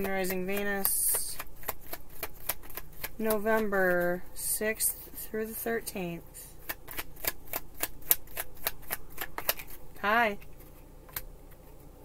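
Playing cards riffle and tap as they are shuffled.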